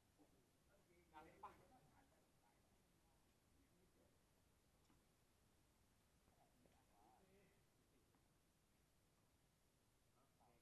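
Young men call out to each other at a distance.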